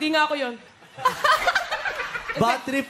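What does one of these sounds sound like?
A woman laughs into a microphone.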